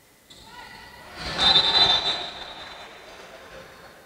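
Sneakers squeak on a hard court as players run.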